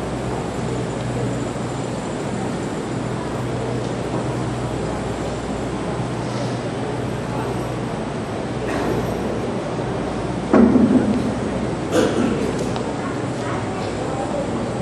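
A large seated crowd murmurs softly.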